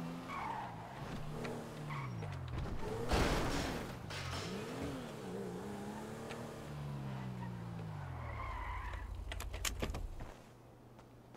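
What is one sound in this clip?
A car engine revs and hums as the car drives, rising and falling in pitch.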